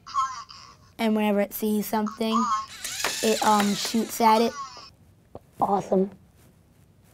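A young boy speaks with animation, close by.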